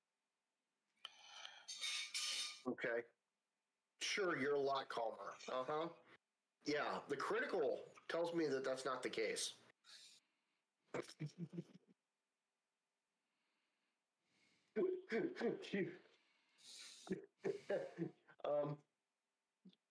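A man speaks casually into a close microphone, in bursts with pauses.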